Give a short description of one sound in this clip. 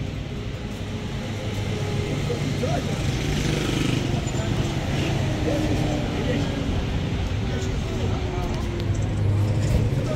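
Men talk nearby in a street.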